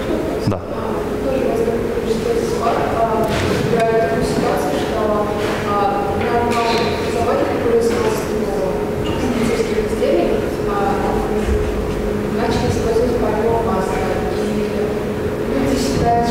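A woman speaks into a microphone in a large room, heard from a distance.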